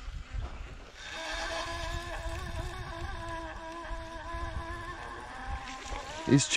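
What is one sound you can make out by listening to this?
A fishing line whirs steadily off a spinning reel during a cast.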